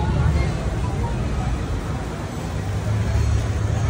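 A crowd of people chatters in the open air.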